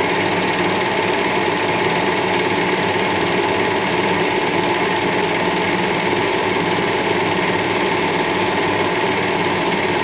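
A metal lathe spins steadily with a constant mechanical hum.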